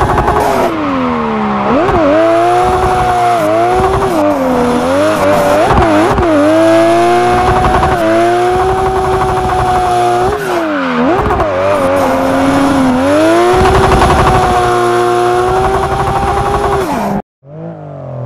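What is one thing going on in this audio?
Tyres squeal as a car slides around bends.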